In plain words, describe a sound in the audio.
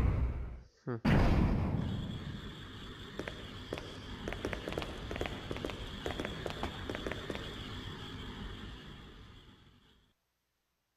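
Footsteps echo along a metal corridor.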